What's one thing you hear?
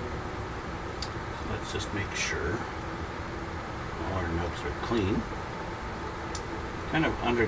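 Small plastic parts click softly between fingers.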